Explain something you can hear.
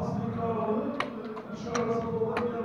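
Backgammon checkers clack sharply on a wooden board.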